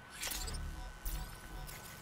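A keypad beeps as buttons are pressed.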